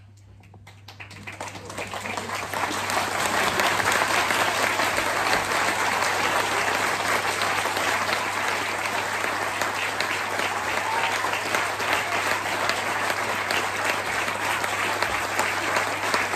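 A large crowd claps and cheers in an echoing hall.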